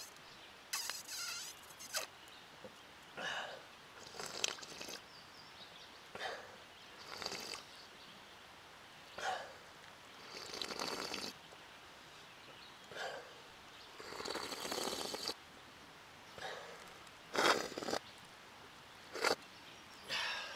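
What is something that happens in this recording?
A man blows air hard in short bursts, close by.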